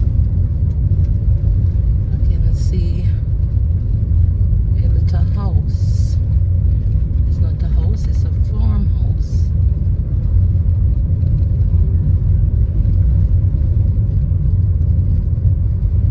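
A car drives along, its engine and road rumble heard from inside the car.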